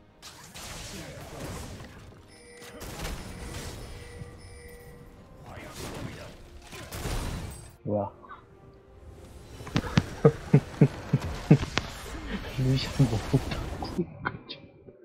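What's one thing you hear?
Game spells burst and explode in a loud battle.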